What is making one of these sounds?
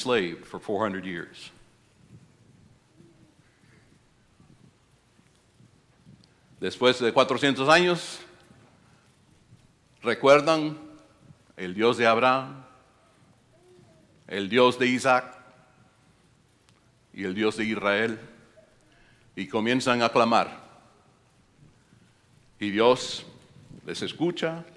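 An elderly man speaks with animation through a microphone, in phrases with long pauses.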